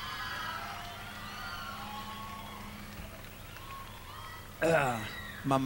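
A large crowd cheers and screams in a huge echoing arena.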